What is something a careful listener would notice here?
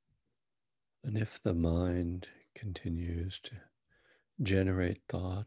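An older man speaks calmly and close into a microphone.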